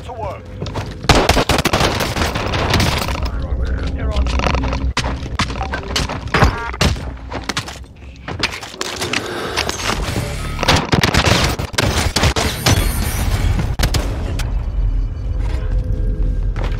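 Shotgun blasts boom sharply, several times in quick bursts.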